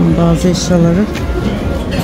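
Adults talk nearby amid a murmur of voices.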